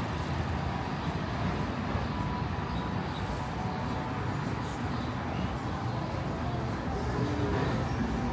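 A bicycle rolls quietly along outdoors.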